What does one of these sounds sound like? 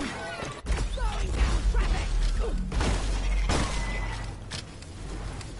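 Gunfire rattles in rapid bursts with a deep rumble.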